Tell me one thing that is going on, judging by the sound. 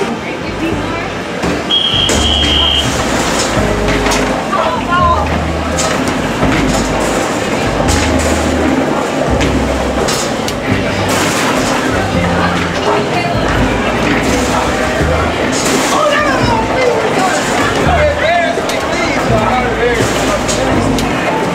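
Basketballs thud against arcade hoops and rattle the rims.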